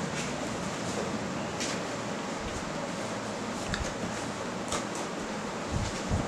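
Hands rub and tap on a cardboard box.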